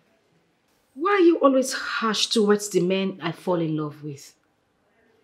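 An older woman speaks calmly, close by.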